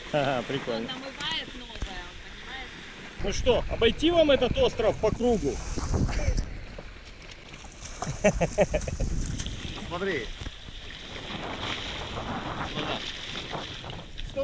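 Small waves lap softly on a sandy shore.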